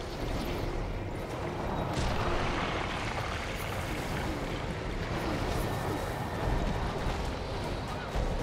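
Magic blasts crackle and boom in a game battle.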